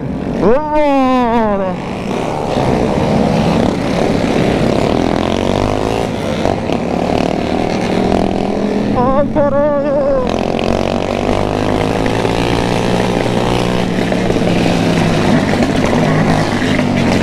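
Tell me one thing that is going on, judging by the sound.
A motorcycle engine rumbles and revs steadily close by.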